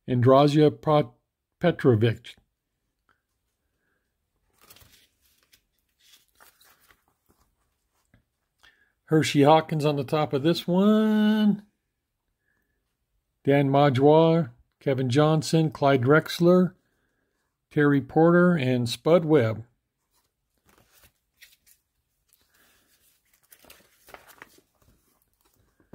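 Plastic sleeves rustle softly as binder pages turn.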